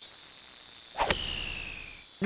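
A golf club strikes a ball with a sharp whack.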